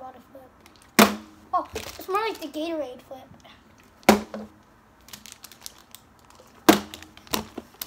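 A plastic bottle thumps down on a wooden table.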